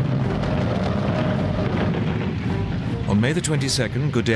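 Tank tracks clatter over dry ground.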